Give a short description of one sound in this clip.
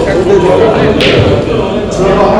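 Pool balls click together sharply.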